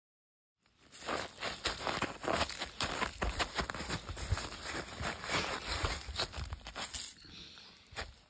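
Boots crunch on icy, snowy ground.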